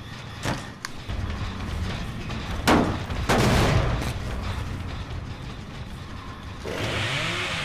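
A chainsaw revs loudly and roars.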